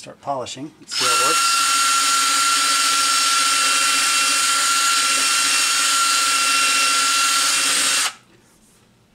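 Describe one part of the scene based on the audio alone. An electric drill whirs loudly as a buffing pad polishes.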